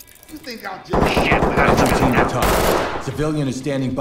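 A rifle fires a rapid burst of shots indoors.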